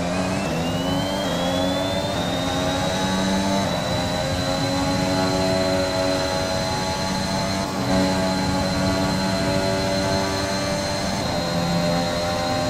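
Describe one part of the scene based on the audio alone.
A racing car engine screams at high revs, climbing through the gears.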